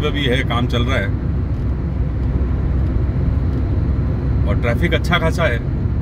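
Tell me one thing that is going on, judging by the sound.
Tyres and engine rumble steadily inside a moving car.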